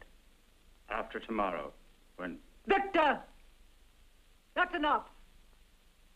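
An elderly woman speaks calmly.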